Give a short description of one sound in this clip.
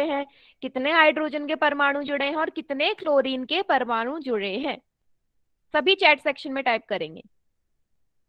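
A young woman speaks with animation through an online call microphone.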